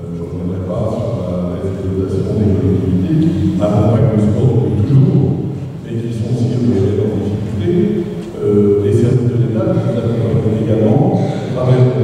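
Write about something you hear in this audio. A man speaks steadily through a microphone and loudspeakers in a large echoing hall.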